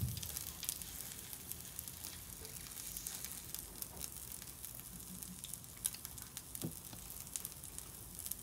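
Sauce sizzles and bubbles in a pan.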